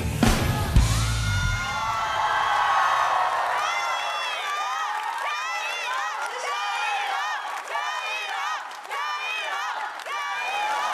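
A woman sings into a microphone through loudspeakers.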